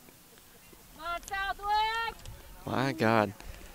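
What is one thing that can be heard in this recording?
Young women shout to each other outdoors on an open field.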